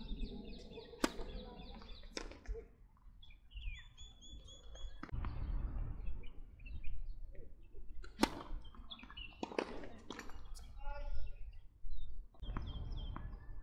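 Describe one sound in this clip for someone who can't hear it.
A tennis racket strikes a ball with sharp pops, outdoors.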